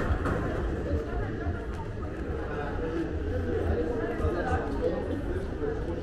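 Voices of a crowd murmur and chatter in a large echoing hall.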